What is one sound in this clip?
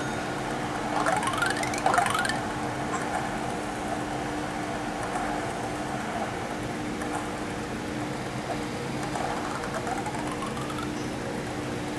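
Quick rising chimes of game sound effects ring from a phone speaker.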